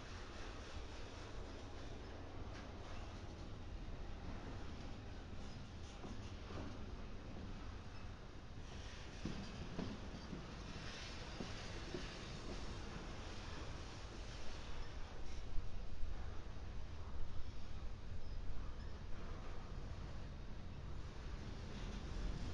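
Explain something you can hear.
A freight train rumbles steadily past close by.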